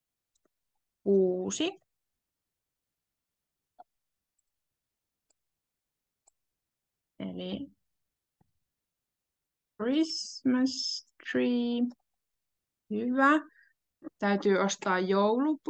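A young woman speaks calmly and clearly through an online call microphone, in short phrases with pauses.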